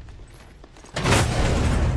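A heavy metal door slides open with a loud rush.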